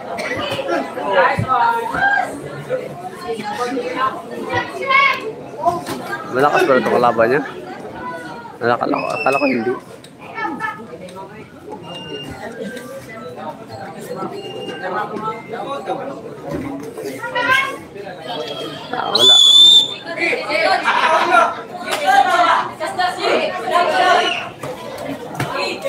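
Boxing gloves thud against bodies and headgear.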